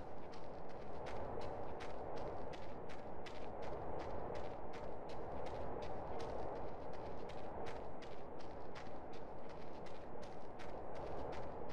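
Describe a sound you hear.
Footsteps scrape quickly and steadily on rock.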